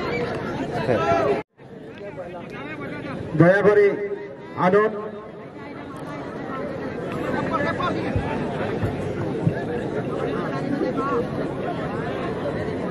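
A large outdoor crowd chatters and murmurs.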